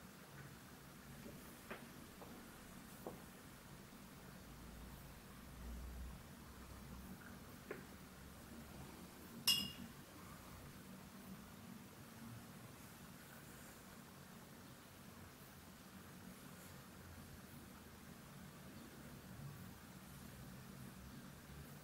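A brush softly brushes across paper.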